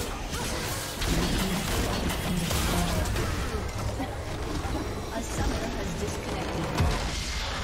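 Magic spells crackle and blast in a hectic fight.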